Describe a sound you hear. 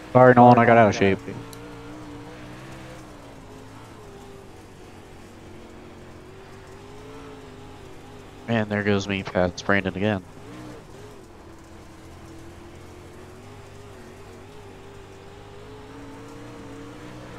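A race car engine drones steadily from inside the cockpit.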